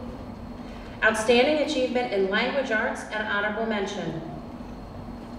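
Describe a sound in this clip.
A woman announces over a loudspeaker in a large echoing hall.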